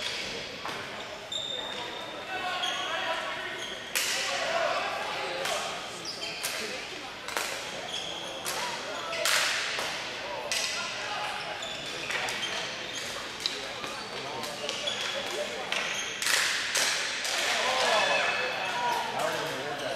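Hockey sticks clack against a ball and the boards in a large echoing arena.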